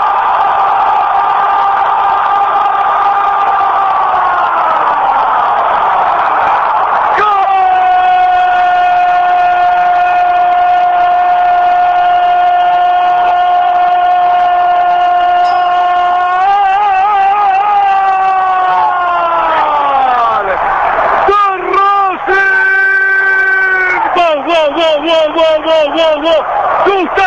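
A large stadium crowd cheers and roars loudly.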